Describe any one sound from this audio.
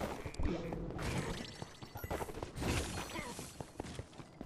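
Weapons clash and magic bursts crackle loudly in a fight.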